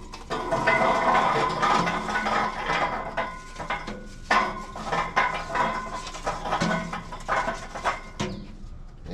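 Charcoal clatters and rattles as it is poured from a metal chimney onto a grate.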